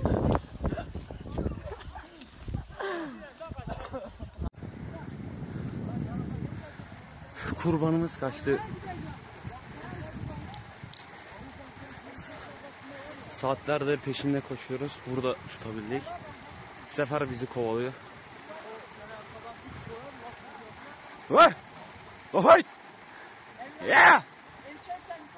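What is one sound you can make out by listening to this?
Men shout with excitement outdoors, close by and farther off.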